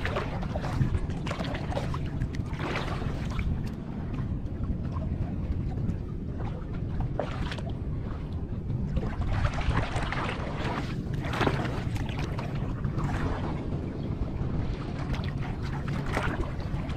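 Wind gusts across open water.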